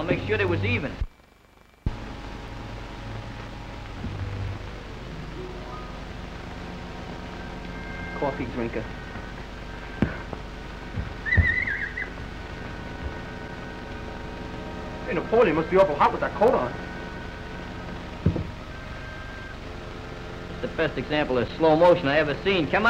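A man speaks with animation, heard through a crackly old recording.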